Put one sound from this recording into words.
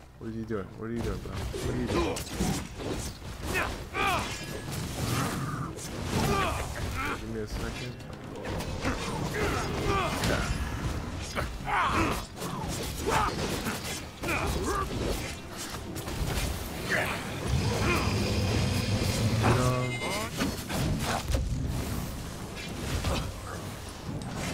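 Blades clash and strike hard against armour in quick bursts.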